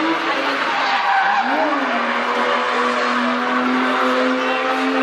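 A car engine roars loudly, its revs rising and falling.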